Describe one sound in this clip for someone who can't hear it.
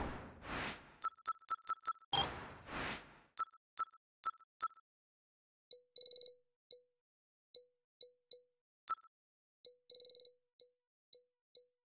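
Short electronic menu blips and beeps sound repeatedly.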